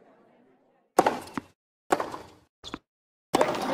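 A racket strikes a tennis ball with a sharp pop.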